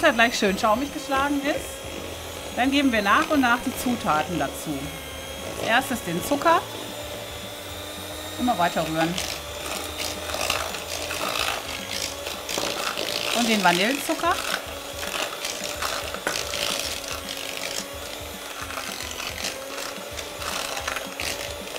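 A hand mixer whirs steadily.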